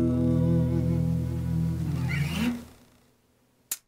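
A guitar chord rings out, then fades away.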